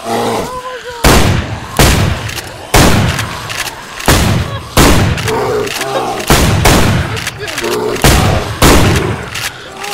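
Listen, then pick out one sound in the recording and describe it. Loud gunshots ring out one after another.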